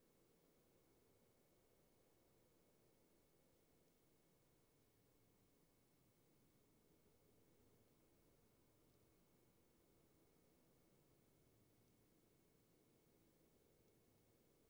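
A low fire rumbles and crackles softly.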